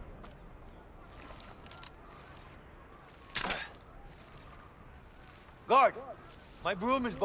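A broom sweeps across rough ground.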